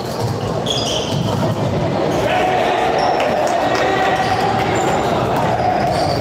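Players' footsteps thud quickly across the court.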